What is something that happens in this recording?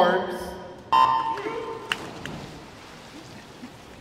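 Swimmers dive and splash into the water.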